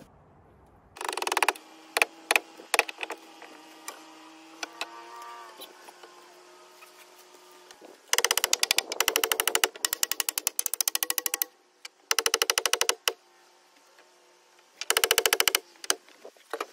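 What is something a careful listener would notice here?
A power drill whirs in short bursts, driving screws into wood.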